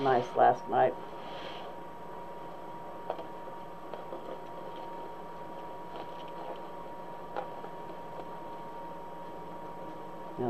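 Deco mesh ribbon rustles and crinkles as hands work it into a wreath.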